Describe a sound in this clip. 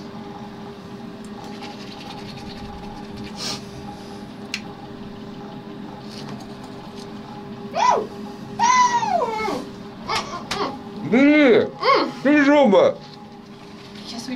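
A man brushes his teeth with a toothbrush.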